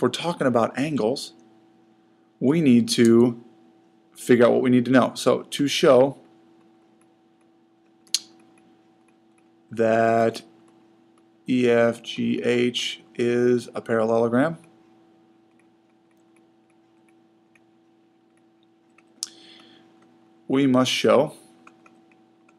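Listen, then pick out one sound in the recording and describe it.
A man speaks calmly into a close microphone, explaining in short phrases with pauses.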